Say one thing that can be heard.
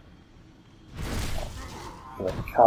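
A sword swings and strikes with a heavy thud.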